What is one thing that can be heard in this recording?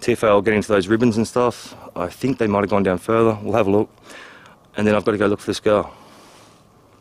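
A middle-aged man speaks quietly and close up.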